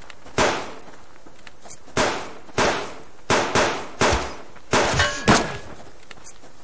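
Rifle shots ring out in quick bursts, each followed by a short echo.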